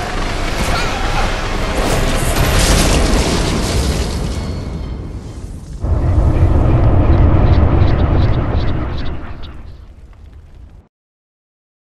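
A blade slashes and strikes with loud heavy impacts.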